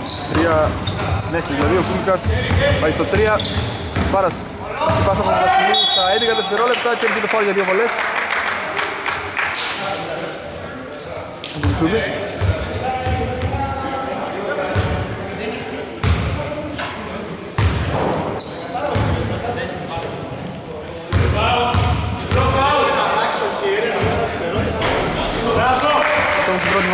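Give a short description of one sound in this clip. Men call out to each other across a large echoing gym.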